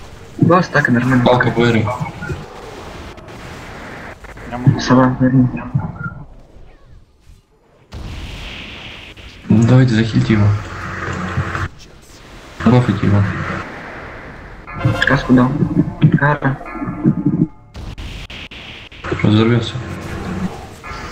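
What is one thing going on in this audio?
Magic spells burst and whoosh in a game.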